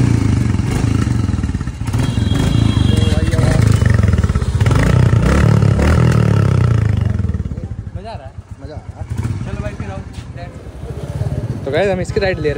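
A motorcycle engine rumbles loudly and revs.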